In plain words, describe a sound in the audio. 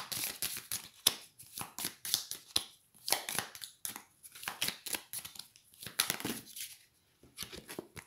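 Playing cards riffle and flap as a deck is shuffled by hand.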